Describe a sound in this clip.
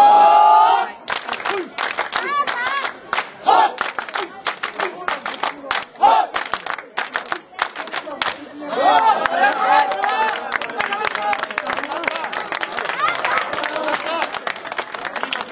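A crowd of men clap their hands in a quick rhythm.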